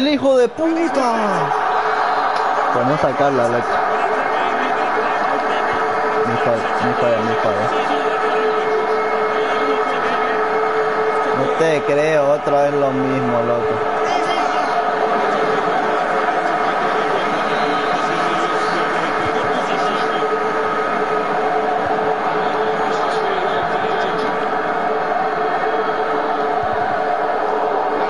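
A stadium crowd cheers and roars steadily.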